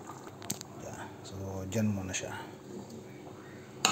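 A wooden spoon scrapes and stirs in a pot.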